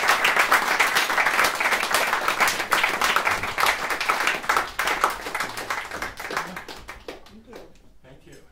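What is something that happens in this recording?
An audience claps and cheers loudly in an echoing room.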